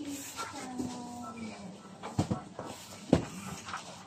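A cardboard box is lifted and tipped.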